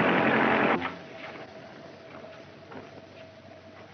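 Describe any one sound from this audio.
A door opens.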